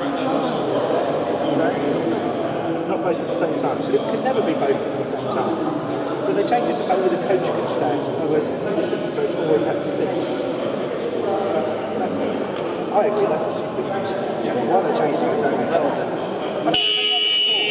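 Several young men talk at once in a large echoing hall.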